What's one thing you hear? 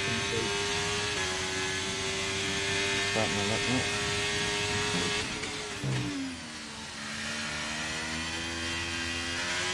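A racing car engine screams at high revs, then drops sharply in pitch and settles into a lower drone.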